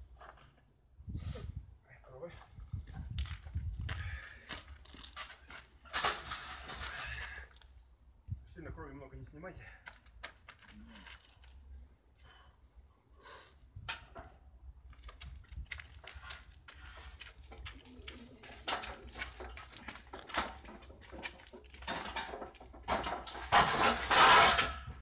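Heavy metal weights clank and knock as a man lifts them.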